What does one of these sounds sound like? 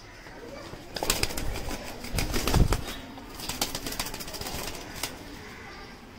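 Pigeons flap their wings noisily in a wire cage.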